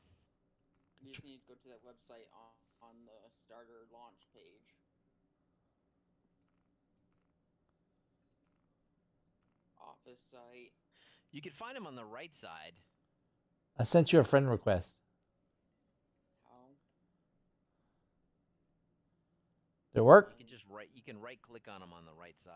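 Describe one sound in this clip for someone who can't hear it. A middle-aged man talks calmly into a microphone, close up.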